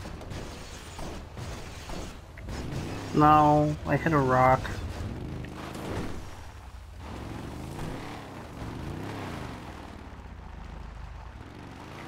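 An off-road vehicle's engine rumbles and revs as it climbs a slope.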